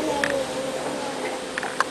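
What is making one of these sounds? A young woman talks through a microphone.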